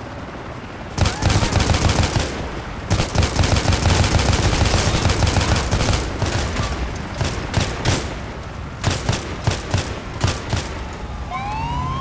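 Rapid gunfire bursts in quick volleys.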